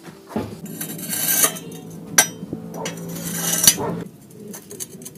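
Steel bars scrape and clank against each other.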